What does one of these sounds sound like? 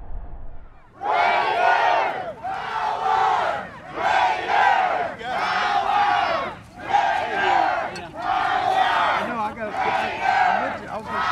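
A large crowd chants and cheers loudly in repeated bursts outdoors.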